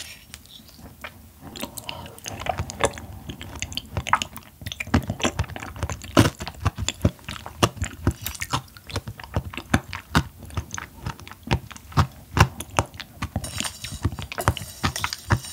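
A young woman chews crunchy food loudly, close to a microphone.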